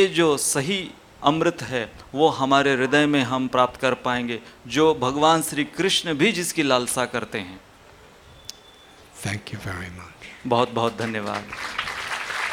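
A man speaks calmly and slowly into a microphone.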